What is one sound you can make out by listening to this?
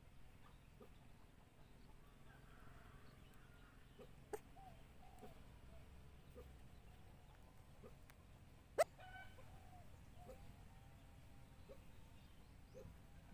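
A dog whimpers softly, close by.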